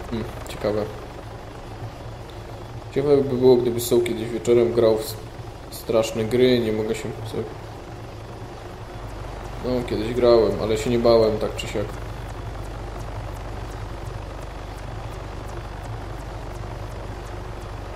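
A helicopter's rotor thrums steadily.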